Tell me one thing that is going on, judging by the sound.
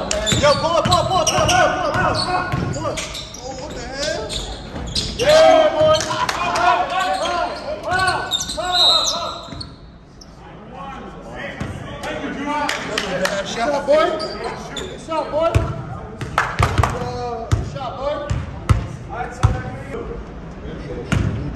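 Men shout and call out to one another with excitement.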